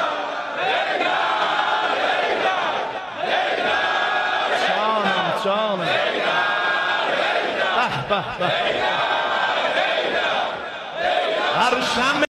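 A man chants loudly and rhythmically through a microphone in a large echoing hall.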